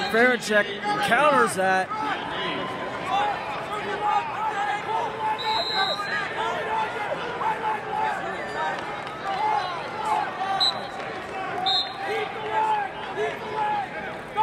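A large crowd murmurs and shouts in a big echoing arena.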